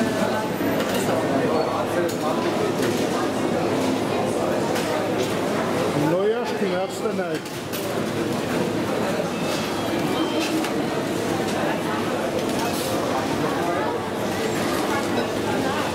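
A crowd of people chatters all around.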